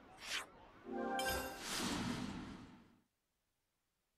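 A whooshing swell rises and fades out.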